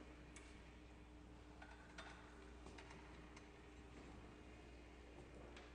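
A violin plays softly in an echoing hall.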